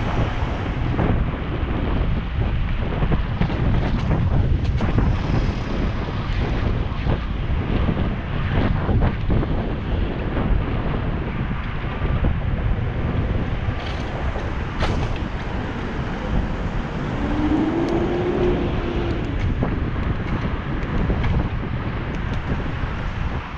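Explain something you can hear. Wind rumbles and buffets loudly throughout, as if outdoors while moving fast.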